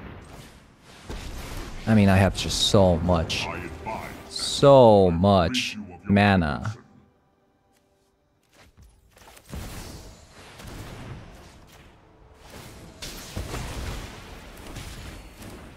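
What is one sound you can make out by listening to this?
A magical game effect whooshes and sparkles.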